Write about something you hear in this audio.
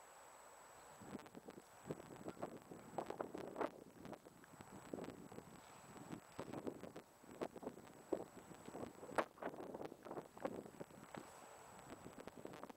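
Wind gusts and buffets the microphone outdoors.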